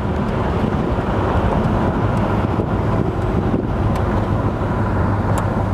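Tyres roll on asphalt.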